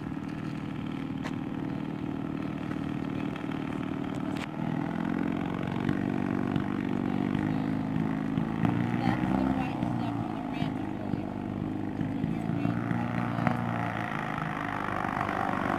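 A small aircraft engine buzzes steadily nearby, growing louder as it revs up.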